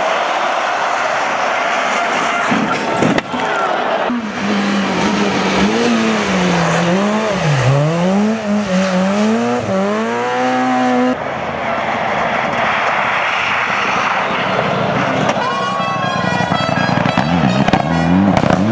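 Tyres skid and crunch on loose gravel.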